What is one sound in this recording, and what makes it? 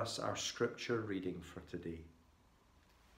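A middle-aged man speaks calmly to the listener, close to the microphone.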